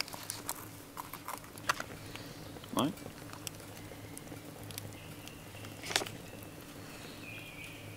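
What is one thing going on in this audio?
A wood fire crackles and pops close by.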